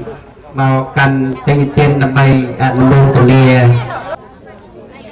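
A man chants in a loud, steady tone into a microphone.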